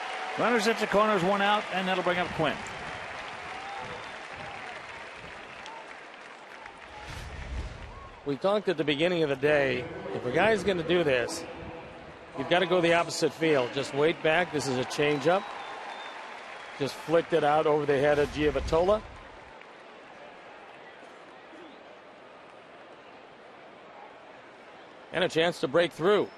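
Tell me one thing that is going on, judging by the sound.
A crowd murmurs in a large open stadium.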